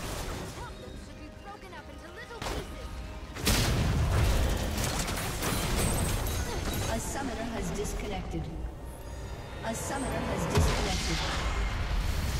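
Game spells and hits crackle and boom in a busy fight.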